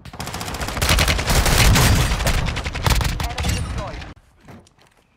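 An assault rifle fires rapid bursts.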